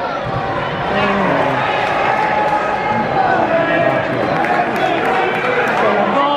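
A large crowd chants and sings loudly across a stadium.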